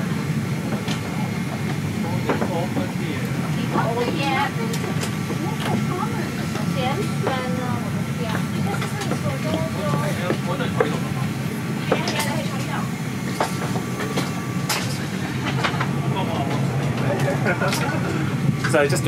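A steady low hum of cabin ventilation fills the air.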